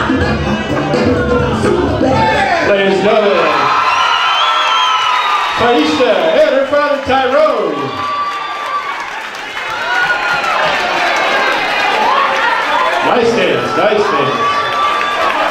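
A crowd of guests cheers and laughs in a large room.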